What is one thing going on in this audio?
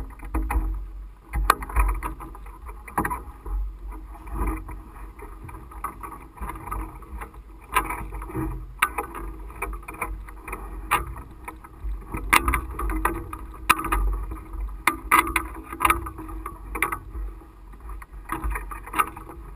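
A long pole knocks and creaks as it is handled.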